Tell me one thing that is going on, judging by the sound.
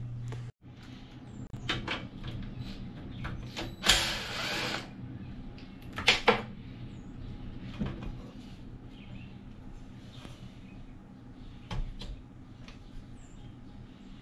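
Metal tools clink and knock.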